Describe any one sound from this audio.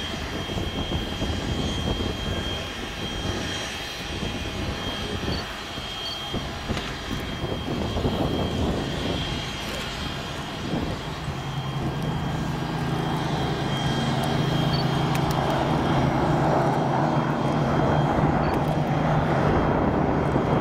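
Propeller aircraft engines drone overhead in the distance, growing louder.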